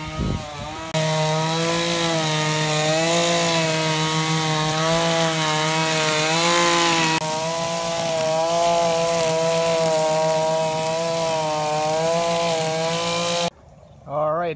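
A string trimmer engine whines steadily up close.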